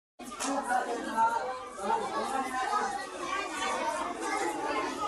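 A crowd of young girls chatters and talks over one another nearby.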